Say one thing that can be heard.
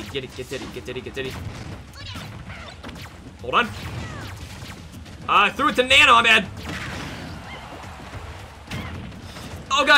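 Video game punches, blasts and whooshes sound in quick bursts.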